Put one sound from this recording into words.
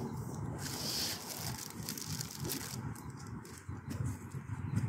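A plastic wrapper crinkles in a man's hands close by.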